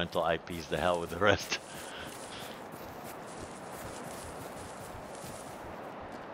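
Footsteps rustle through dry grass and undergrowth.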